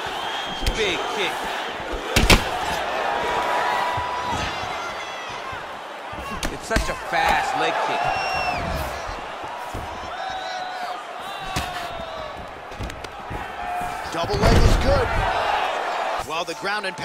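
A large crowd cheers and whistles in an echoing arena.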